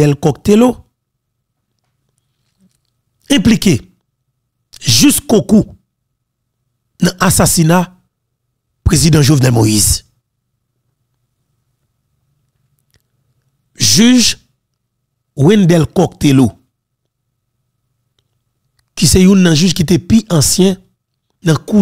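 A man speaks firmly and close into a microphone, in short bursts with pauses.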